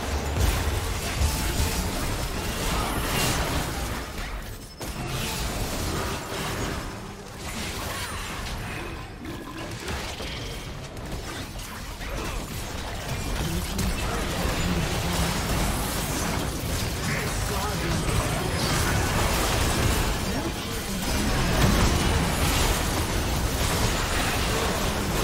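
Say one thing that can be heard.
Game spells and attacks crackle and burst in a busy battle.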